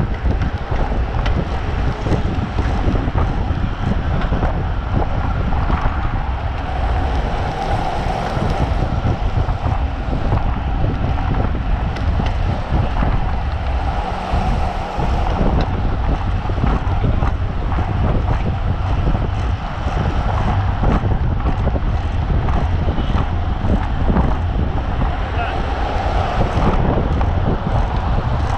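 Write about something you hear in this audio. Wind buffets loudly across a microphone outdoors.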